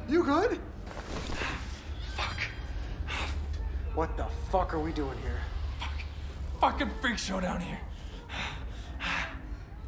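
A man groans and gasps in pain close by.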